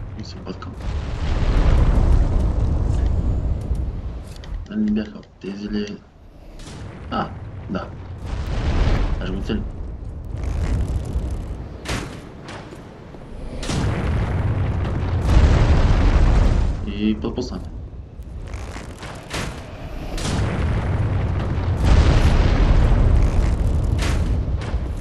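A huge beast roars and rumbles with a deep, heavy growl.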